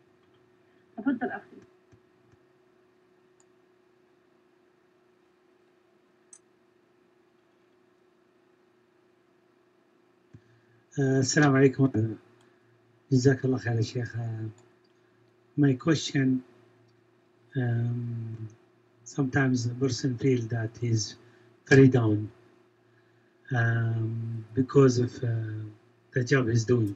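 A middle-aged man speaks calmly and close to the microphone, in short phrases with pauses.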